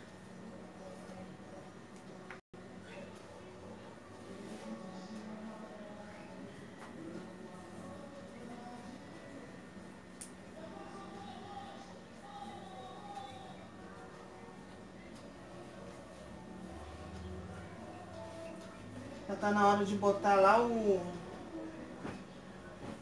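Clothes rustle as they are folded.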